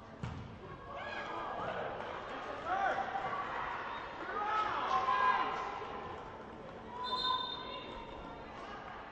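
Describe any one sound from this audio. Spectators cheer and call out from the side.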